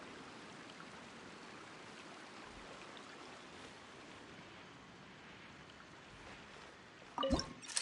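Light footsteps tap on a stone floor.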